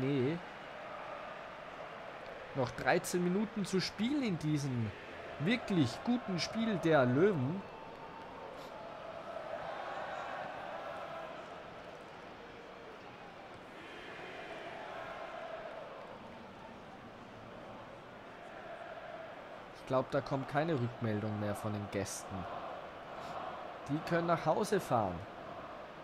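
A large stadium crowd murmurs and cheers steadily, swelling now and then.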